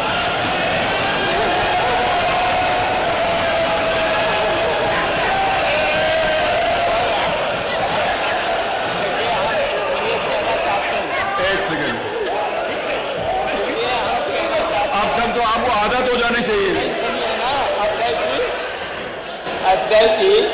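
A crowd of men shouts and clamours in a large echoing hall.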